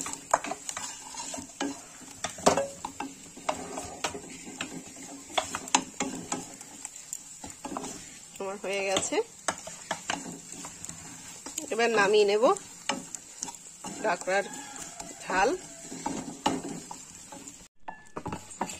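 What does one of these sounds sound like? A spatula scrapes and clatters against a frying pan.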